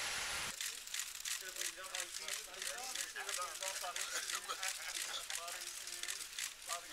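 Men talk nearby in lively voices.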